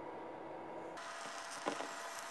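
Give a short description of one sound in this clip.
A wooden spoon stirs rice in a bowl.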